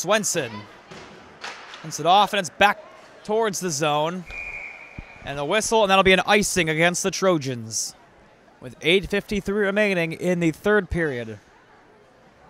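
A man nearby shouts and cheers loudly in a large echoing rink.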